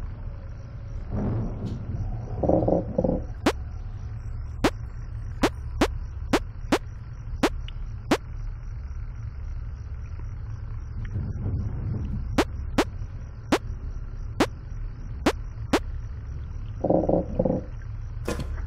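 A young man speaks briefly and quietly, close to a microphone.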